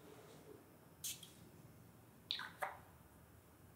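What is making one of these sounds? A plastic bottle cap clicks shut.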